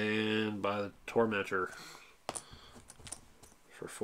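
Game tokens clack together as a hand picks them up.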